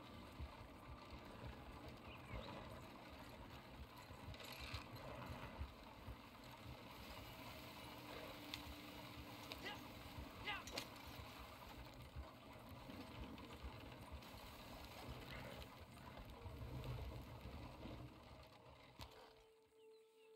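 Horse hooves clop steadily on dirt.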